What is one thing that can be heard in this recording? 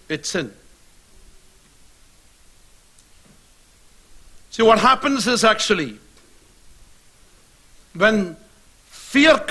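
A man speaks in short, emphatic bursts with long pauses, through a microphone.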